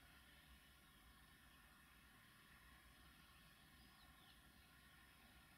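A distant locomotive rumbles low and steady as it approaches.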